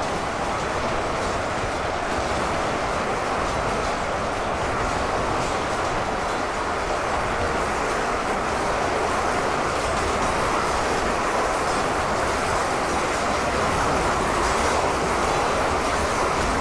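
A huge crowd of fighters roars and clashes in a steady din of battle.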